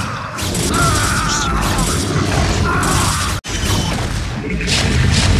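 Small arms fire in rapid bursts during a battle.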